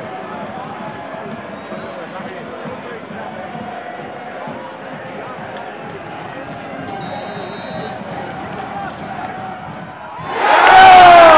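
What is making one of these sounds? A large crowd of fans murmurs and chants in a stadium.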